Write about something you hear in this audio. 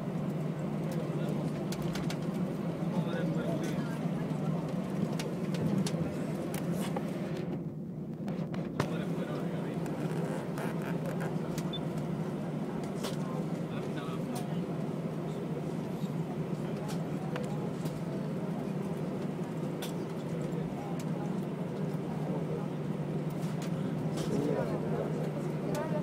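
Landing gear rumbles and rattles over the runway.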